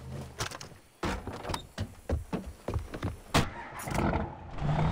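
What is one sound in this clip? A heavy vehicle door clanks open and shut.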